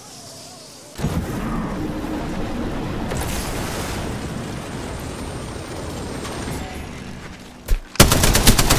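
Wind rushes loudly during a fast descent.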